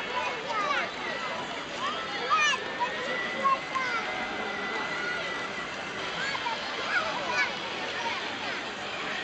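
A crowd of children and adults chatters and shouts in the distance outdoors.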